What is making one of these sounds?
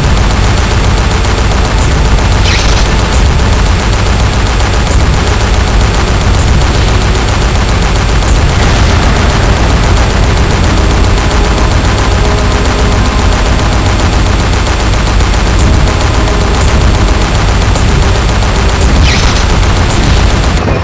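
Twin machine guns fire in rapid, continuous bursts.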